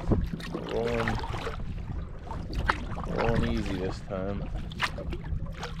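A paddle splashes in water.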